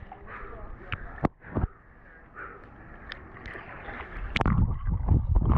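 Swimmers splash in the water nearby.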